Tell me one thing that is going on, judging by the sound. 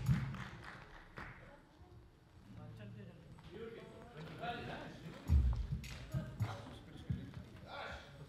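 A band plays softly on a stage in a large hall.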